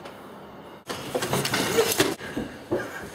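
A man bangs on a glass door.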